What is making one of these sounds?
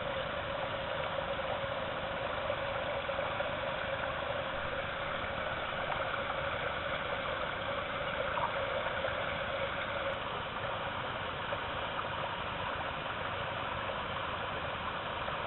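A shallow stream rushes and burbles steadily over rocks.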